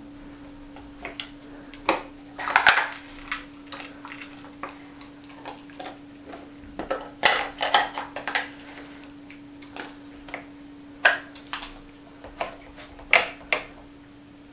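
A dog nudges wooden blocks in a wooden puzzle board, making them knock and clatter.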